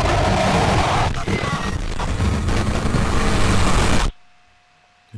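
A loud explosion roars and crackles.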